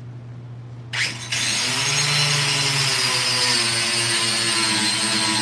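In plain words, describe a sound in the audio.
An electric polisher whirs loudly.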